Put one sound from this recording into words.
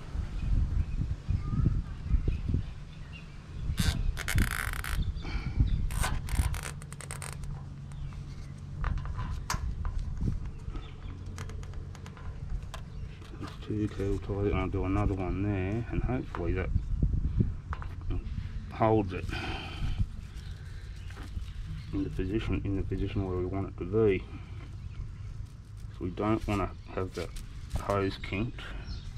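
Plastic parts click and rustle in someone's hands.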